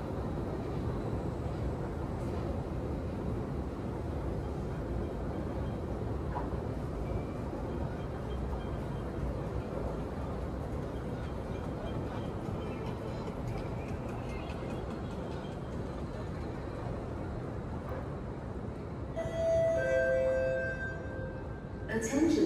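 A steady low hum of air vents fills a large, empty hall.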